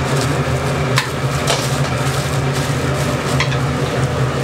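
A metal frying basket clinks against a metal tray.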